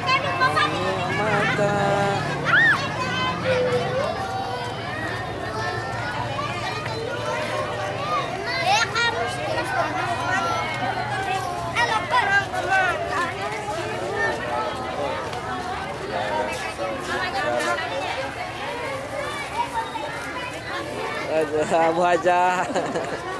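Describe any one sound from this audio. A large crowd of children and adults chatters outdoors.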